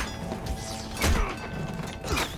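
A sharp metallic clang rings out.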